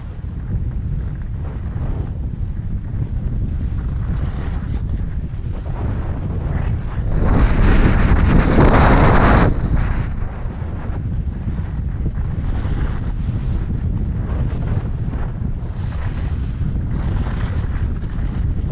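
Skis scrape and hiss over packed snow close by.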